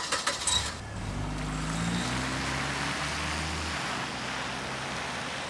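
A car engine starts and the car drives off.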